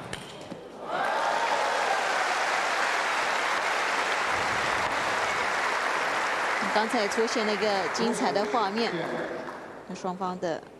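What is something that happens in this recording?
A large crowd applauds and cheers loudly in a big echoing hall.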